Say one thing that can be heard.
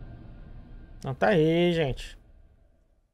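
A man speaks a short, drawn-out exclamation into a close microphone.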